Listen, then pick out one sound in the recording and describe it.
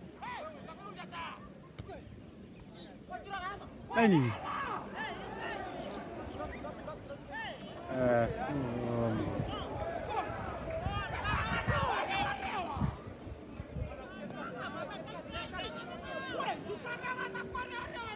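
Young men shout and call to each other across an open field, some way off.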